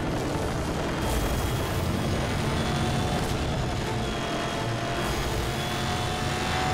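Wind rushes past a fast car.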